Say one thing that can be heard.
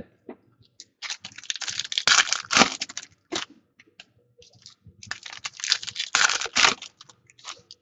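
Plastic wrappers crinkle and rustle as hands tear open card packs.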